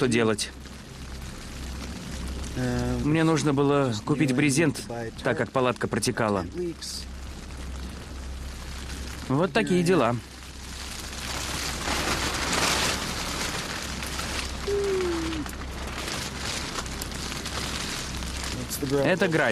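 Rain patters steadily on a tent.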